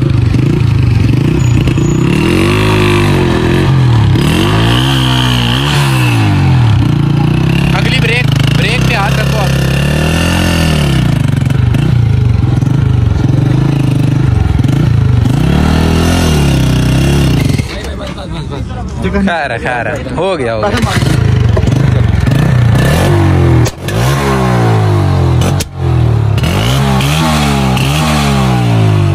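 A motorcycle engine revs up and down loudly, close by.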